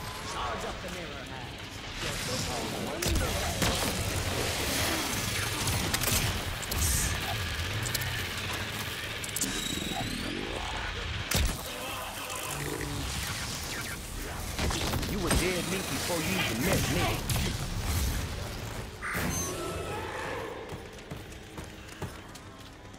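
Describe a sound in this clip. Game weapons fire with loud zaps and blasts.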